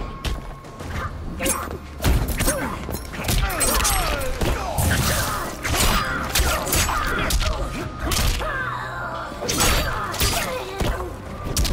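Heavy punches and kicks land with loud thuds and cracks.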